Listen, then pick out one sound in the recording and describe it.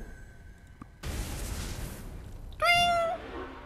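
A magical burst whooshes and crackles.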